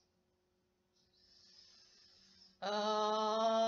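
A young woman breathes in deeply close by.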